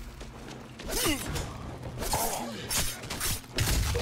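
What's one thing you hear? A knife slashes and hits a zombie with wet thuds.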